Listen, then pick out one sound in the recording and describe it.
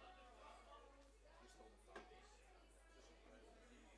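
Pool balls clack together.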